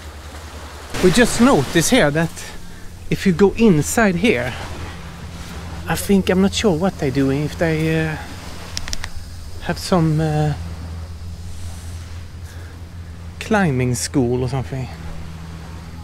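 A man talks calmly, close by, pausing now and then.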